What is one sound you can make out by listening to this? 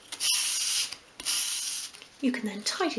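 Sandpaper scrubs briskly across a surface.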